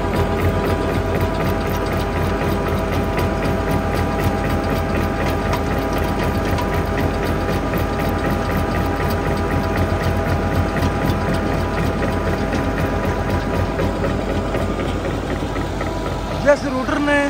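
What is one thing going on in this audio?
A tractor engine runs with a steady droning rumble close by.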